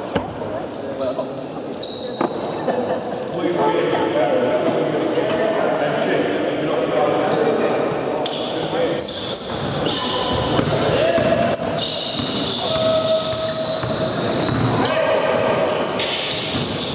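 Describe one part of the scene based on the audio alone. Sneakers squeak sharply on a hard floor in a large echoing hall.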